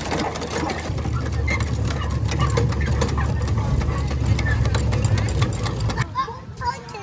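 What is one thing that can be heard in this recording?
Water splashes from a hand pump being worked.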